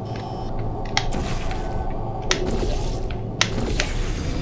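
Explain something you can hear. A futuristic gun fires with sharp electronic zaps.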